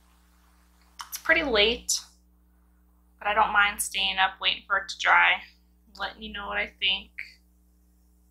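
A woman speaks close to a microphone in short, animated bursts.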